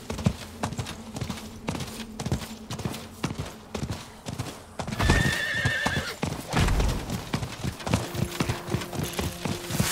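Horse hooves gallop rapidly over sand.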